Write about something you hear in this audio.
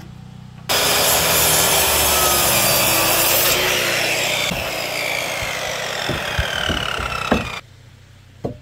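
A circular saw cuts through lumber.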